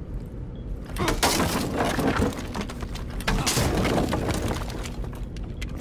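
An explosion blasts through a wooden wall, with debris crashing down.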